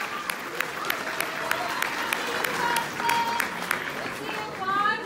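Hands clap sharply in quick rhythm.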